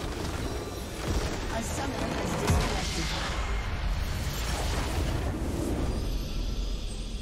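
A large magical explosion booms and rumbles.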